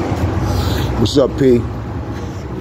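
A man speaks briefly and loudly close by.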